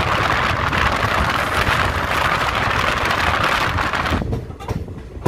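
A passing freight train roars and rattles loudly close by.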